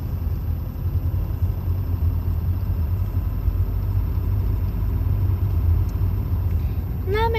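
A car rumbles low and steady while driving.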